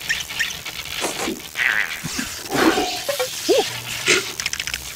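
A small cartoon creature gasps and squeals in surprise.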